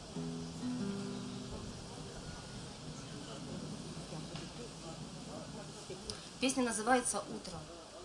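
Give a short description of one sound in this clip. A woman sings into a microphone outdoors.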